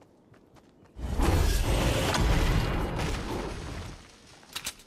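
An axe chops into wood with rapid thuds.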